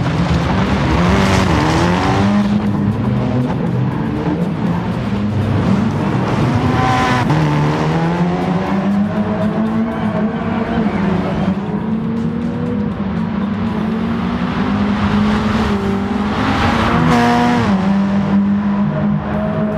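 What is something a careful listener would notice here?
Gravel sprays under a car's tyres.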